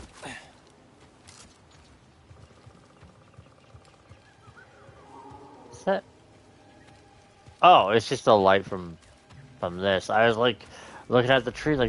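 Footsteps run over grass and rocky ground.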